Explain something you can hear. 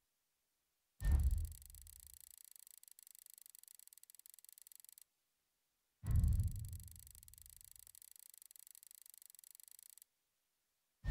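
A score counter whirs steadily as it counts up.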